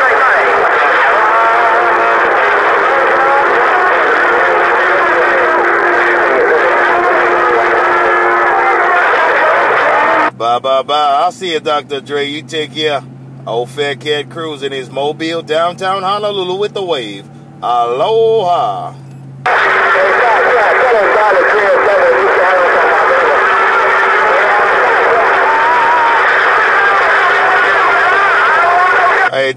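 Radio static hisses and crackles loudly from a loudspeaker.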